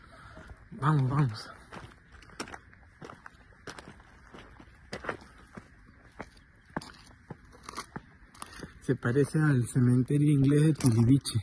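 Footsteps crunch on gravel and scrape on stone steps.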